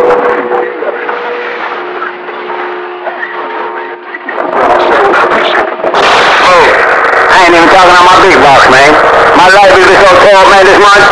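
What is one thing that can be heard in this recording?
An old radio receiver hisses and crackles with static.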